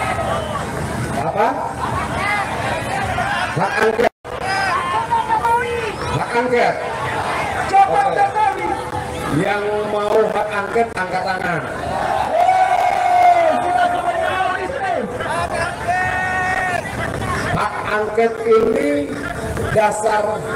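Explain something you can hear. A man gives a speech loudly into a microphone, heard through a loudspeaker outdoors.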